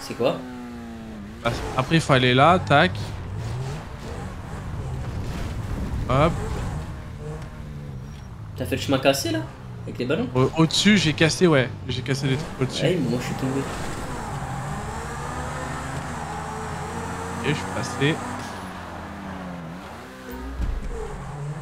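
A sports car engine roars and revs at high speed.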